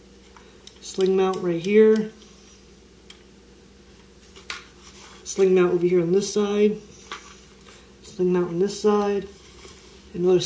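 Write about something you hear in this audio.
Hands handle a plastic toy rifle with light clicks and knocks.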